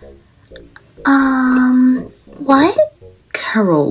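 A young woman asks something hesitantly, close up.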